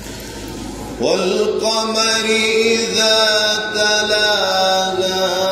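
A young man chants in a long, melodic voice through a microphone.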